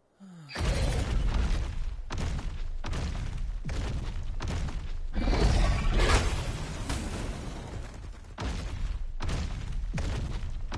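A large creature's heavy footsteps thud on the ground as it runs.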